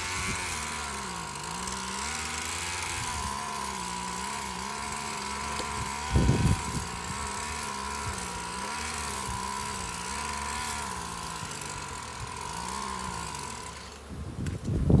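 Bees buzz in a steady, droning hum.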